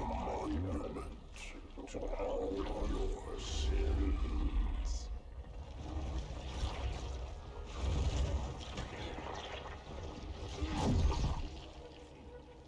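A huge creature lets out a deep, rumbling growl.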